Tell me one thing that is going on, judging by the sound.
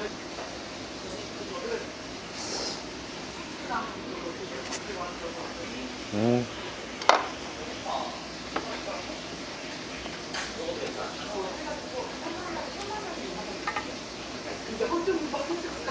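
Chopsticks and a spoon clink and scrape against a hot pan.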